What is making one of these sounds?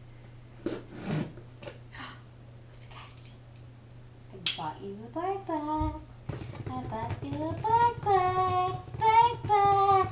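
Cardboard rustles and taps as a box is handled.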